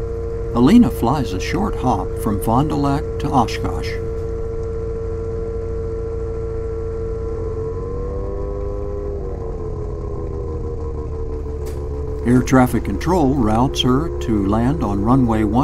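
An aircraft engine drones steadily, with its pitch rising and falling.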